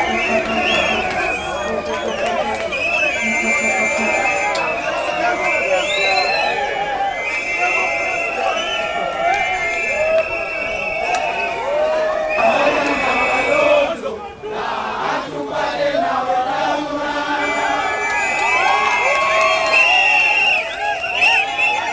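A large crowd of men chants and shouts loudly outdoors.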